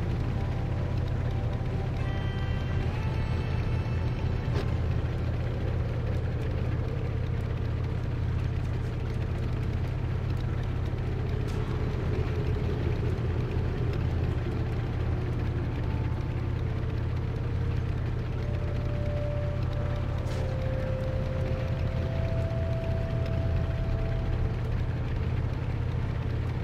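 Hooves thud steadily as a mount runs over grass and snow.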